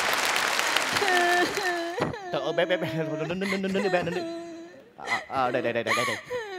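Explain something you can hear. A young woman sobs and wails.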